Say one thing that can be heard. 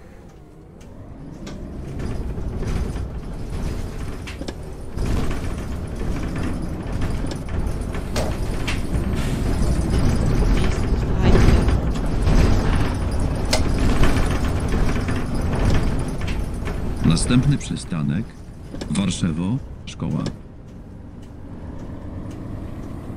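A bus engine rumbles, growing louder as the bus picks up speed.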